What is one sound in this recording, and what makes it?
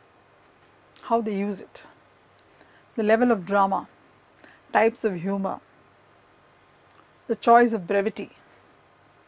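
A woman speaks calmly and clearly into a close microphone, in short phrases with pauses.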